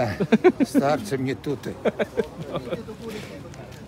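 A man talks close by, briskly.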